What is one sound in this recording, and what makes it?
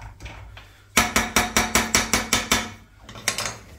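A spoon clinks rapidly against a pot.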